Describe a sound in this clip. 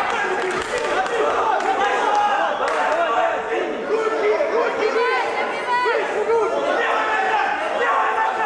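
A crowd of spectators shouts and cheers loudly indoors.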